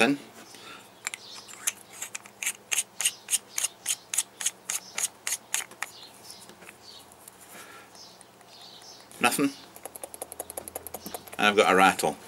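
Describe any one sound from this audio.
A metal tube ratchets with rapid clicks as it is twisted.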